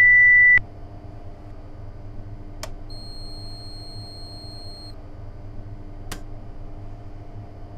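A train's electric motor hums steadily from inside the cab.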